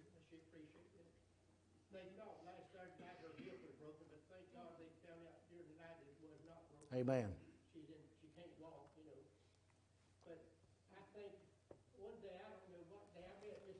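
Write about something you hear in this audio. An older man speaks calmly through a microphone in a large, echoing room.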